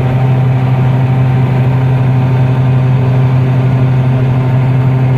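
A combine harvester's header rattles as it cuts dry crops.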